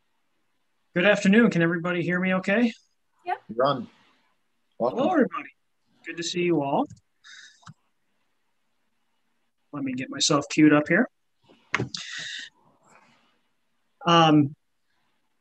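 A second man speaks calmly over an online call.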